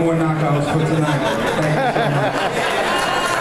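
A young man sings loudly into a microphone through loudspeakers in a large echoing hall.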